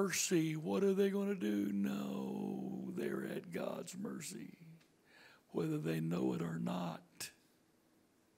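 An older man speaks through a microphone over loudspeakers in a large room.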